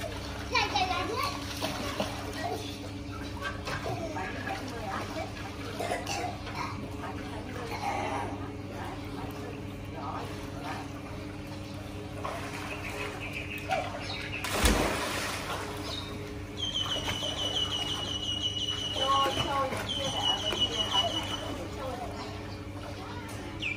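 A pool machine hums steadily.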